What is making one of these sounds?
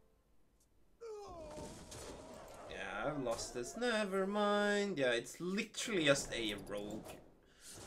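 Magical game sound effects whoosh and chime as a spell is cast.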